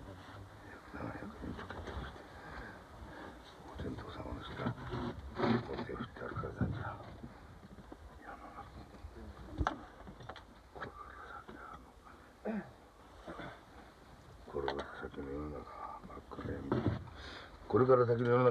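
A middle-aged man speaks in a low, strained voice close by.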